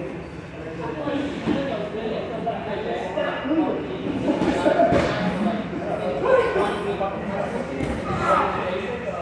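Men talk casually in a large echoing room.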